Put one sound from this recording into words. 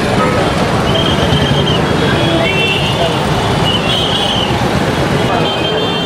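A crowd of men talks and shouts outdoors.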